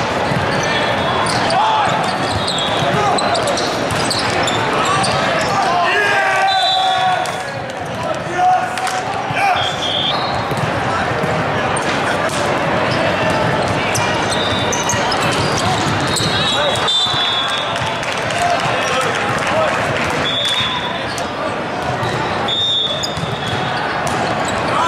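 Sneakers squeak on a sport court.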